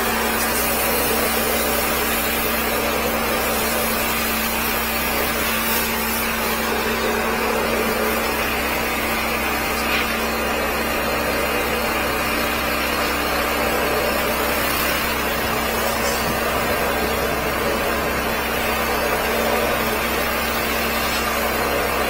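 A machine hums and whirs steadily.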